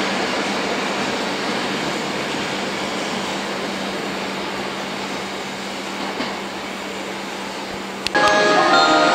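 A subway train approaches along the track with a steady rushing roar.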